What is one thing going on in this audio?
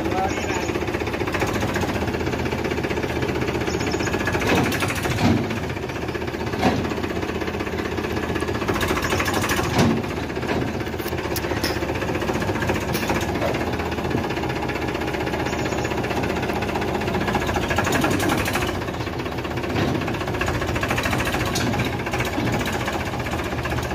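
Tractor tyres crunch over dirt.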